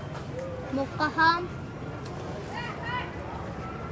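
Leaves rustle as a monkey moves in a tree.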